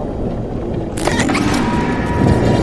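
A body crashes heavily onto wet debris.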